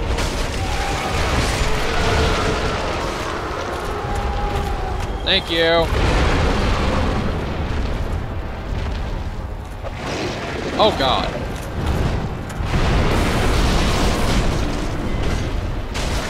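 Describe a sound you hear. A deep, steady rumble of burning lava fills the air.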